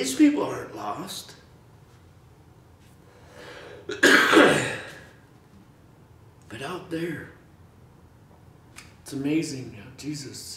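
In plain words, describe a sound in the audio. A middle-aged man speaks expressively in a quiet room, pausing between phrases.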